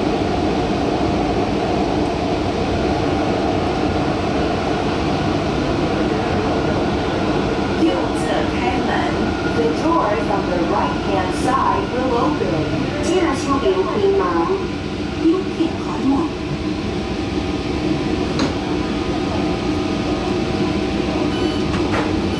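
A train hums and rumbles steadily along rails.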